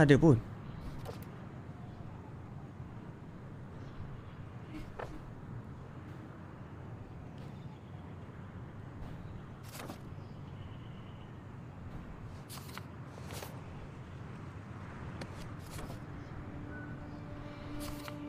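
Paper rustles as a sheet is flipped over.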